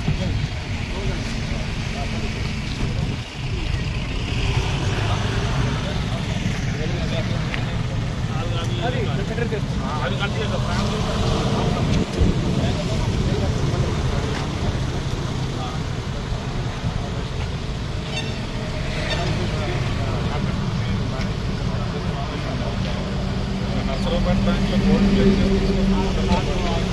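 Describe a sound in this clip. Middle-aged men talk with each other outdoors.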